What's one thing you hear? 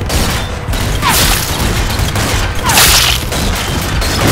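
A rifle fires loud booming shots that ring out.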